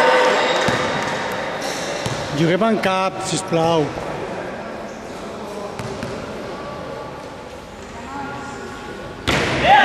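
People murmur and call out in a large echoing hall.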